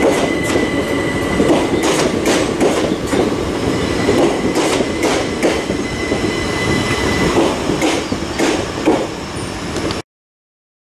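A passenger train rumbles past close by on the rails.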